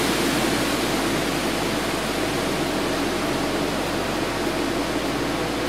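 Gas rushes out with a loud, steady hiss.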